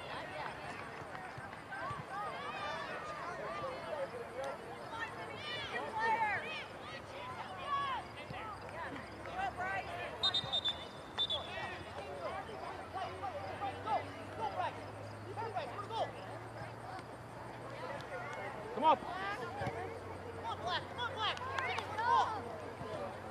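Spectators on a sideline talk and call out outdoors, some distance away.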